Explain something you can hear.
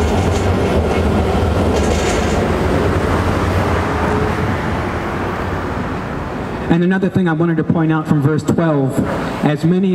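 A car drives past on the street.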